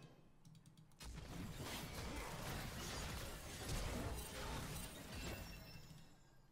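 Magic spells whoosh and clash in a video game.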